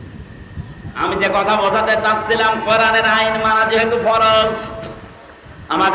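A man chants loudly in a melodic voice through a microphone and loudspeakers.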